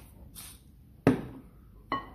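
A pepper mill is set down with a knock on a countertop.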